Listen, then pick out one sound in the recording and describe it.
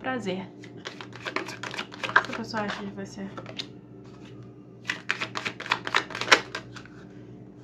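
Cards are shuffled by hand with quick, crisp flicks.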